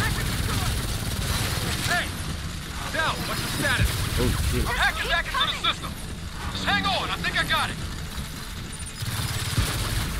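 Gunfire rattles from a video game.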